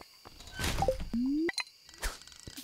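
A fishing line swishes as it is cast.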